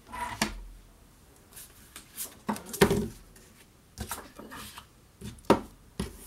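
A plastic glue stick is set down on a wooden table with a light knock.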